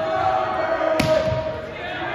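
A volleyball thumps as it is served.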